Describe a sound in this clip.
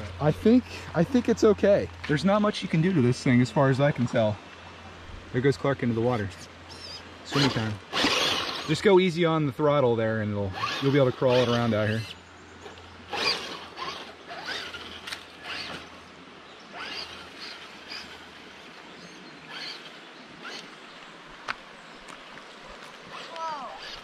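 A shallow stream babbles gently over rocks.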